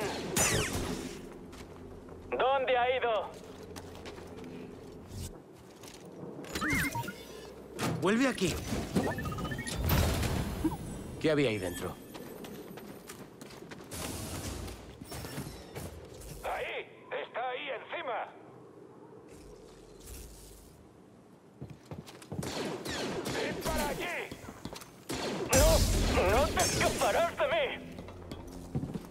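A laser sword hums and swooshes through the air.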